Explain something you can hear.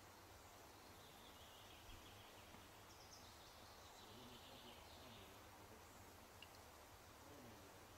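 Leaves rustle softly in a light breeze outdoors.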